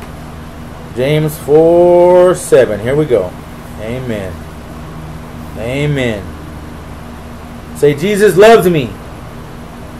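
A middle-aged man speaks close to a microphone, reading out slowly in short phrases.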